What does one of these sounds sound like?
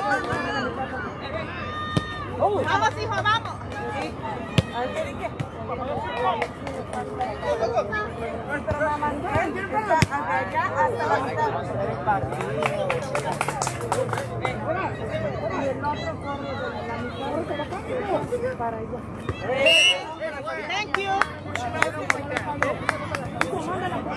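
People nearby chatter and talk.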